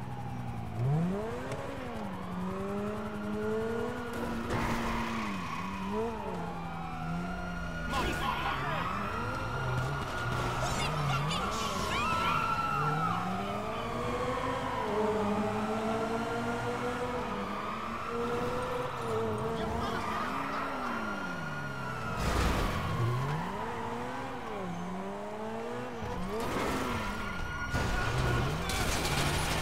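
A sports car engine revs and roars as the car speeds through traffic.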